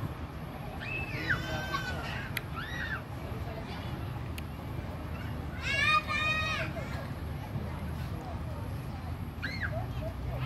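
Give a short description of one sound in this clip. Young children shout and squeal outdoors.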